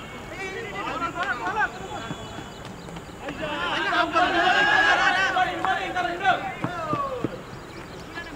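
Men shout loudly outdoors across an open field.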